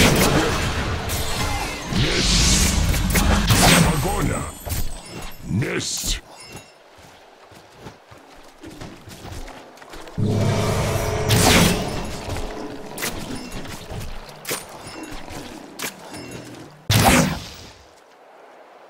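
Magic spells burst and whoosh.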